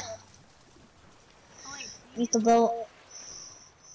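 Water splashes as a swimmer paddles.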